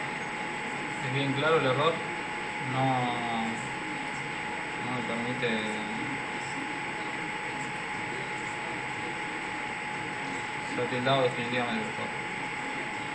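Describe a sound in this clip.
A young man speaks casually into a nearby microphone, in short bursts.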